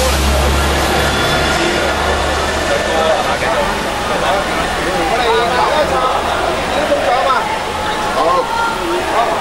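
A large crowd murmurs in the background.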